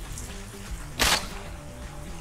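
A pistol fires a sharp shot.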